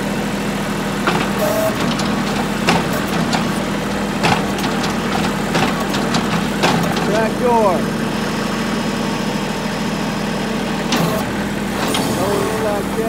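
Metal levers clunk and click.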